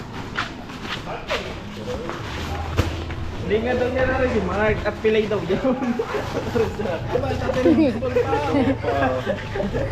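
Plastic sacks rustle as a man lifts one.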